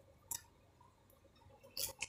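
A comb scrapes through hair.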